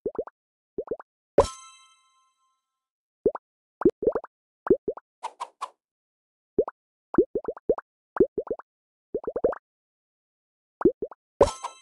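Quick bubbly pops sound again and again as game pieces drop into place.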